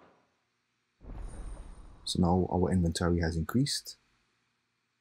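A shimmering game chime swells and fades.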